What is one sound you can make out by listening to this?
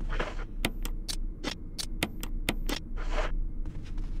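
Menu selections click and beep sharply.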